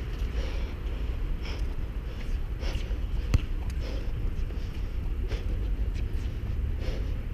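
Footsteps thud on a hard court at a running pace.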